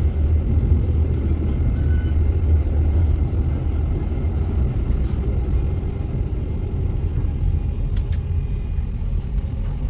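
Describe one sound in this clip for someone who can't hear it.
A passing tram rolls by close alongside.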